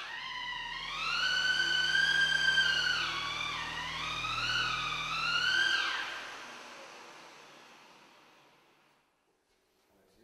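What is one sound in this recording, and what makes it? Water ripples and splashes across a flooded pavement.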